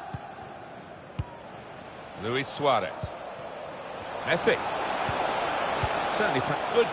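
A stadium crowd cheers and murmurs steadily, swelling louder toward the end.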